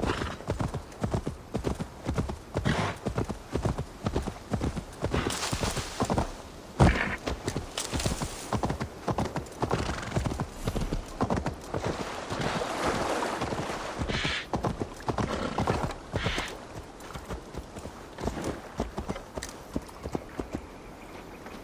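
A horse gallops with rhythmic hoofbeats.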